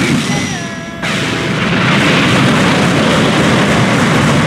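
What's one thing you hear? Rocks crash and rumble as they scatter.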